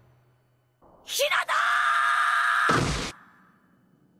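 A young man shouts out in alarm.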